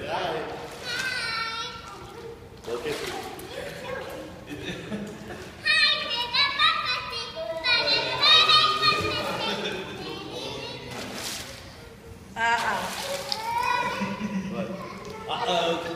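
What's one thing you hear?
Young children shout and squeal excitedly in an echoing room.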